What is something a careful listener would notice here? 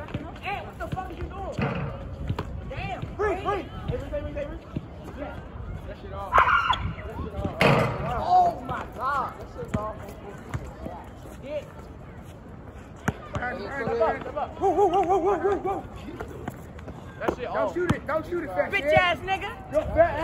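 Young men talk and call out to each other outdoors.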